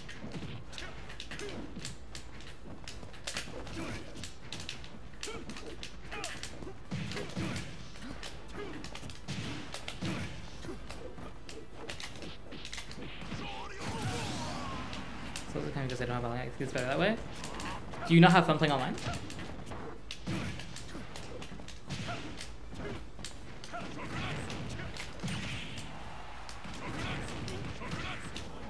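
Punches, kicks and blasts from a fighting game thud and crack again and again.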